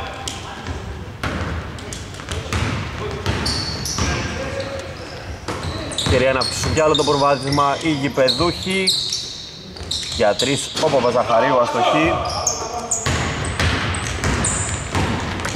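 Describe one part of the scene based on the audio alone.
Sneakers squeak sharply on a court in a large echoing hall.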